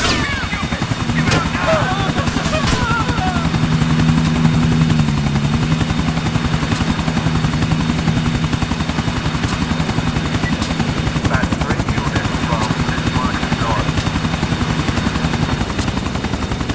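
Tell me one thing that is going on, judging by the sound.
A helicopter's engine whines as it lifts off and flies.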